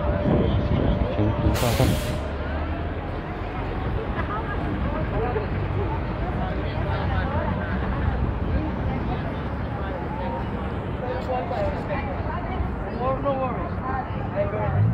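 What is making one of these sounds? Traffic rumbles steadily along a busy city street.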